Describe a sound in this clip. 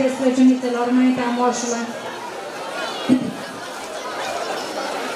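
A large crowd of people chatters and murmurs outdoors.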